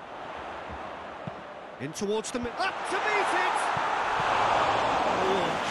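A large stadium crowd roars, swelling louder.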